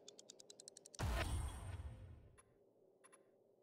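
A deep crafting whoosh booms and slowly fades.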